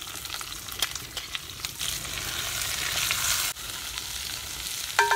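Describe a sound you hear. A man stirs food in a metal pot.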